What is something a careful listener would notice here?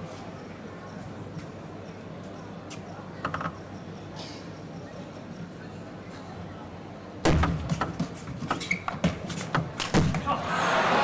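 A table tennis ball clicks back and forth on paddles and table.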